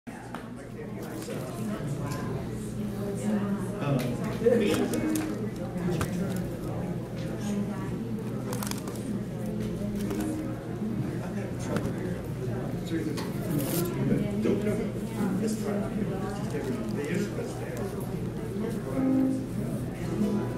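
An acoustic guitar strums a steady rhythm.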